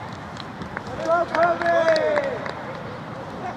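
Teenage players shout on an open field outdoors.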